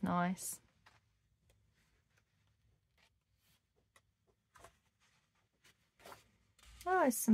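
Paper pages rustle softly as a book's pages are turned.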